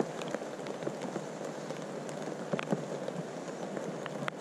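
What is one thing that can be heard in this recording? Nestling birds cheep softly.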